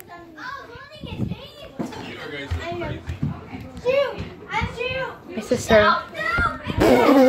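Footsteps thump on a wooden floor.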